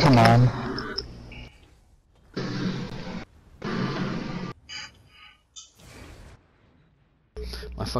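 Magic blasts whoosh and crackle in short bursts.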